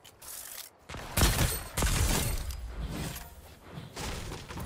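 Gunshots bang loudly in quick bursts.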